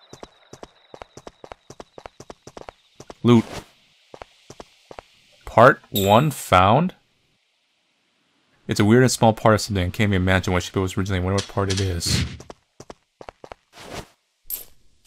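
Light footsteps tap quickly on stone.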